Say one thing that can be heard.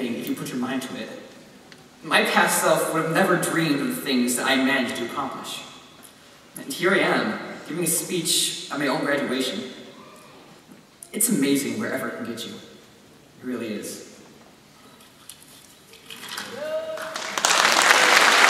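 A young man speaks calmly through a microphone in a large echoing hall.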